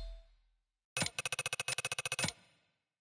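A rapid ticking counter tallies a score.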